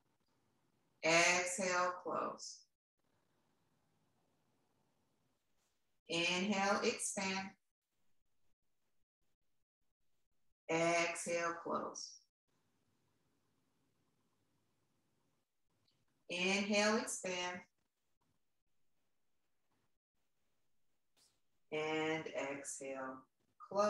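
A woman speaks calmly and slowly in short phrases, close by.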